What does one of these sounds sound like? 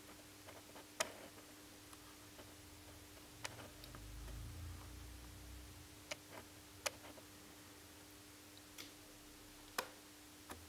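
A plastic cassette door clicks and rattles as a hand works it.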